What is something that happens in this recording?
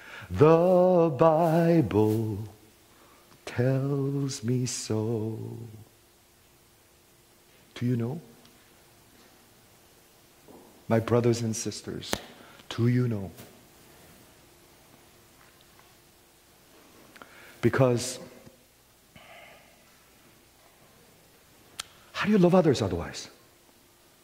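A middle-aged man speaks with animation into a headset microphone, in bursts with pauses.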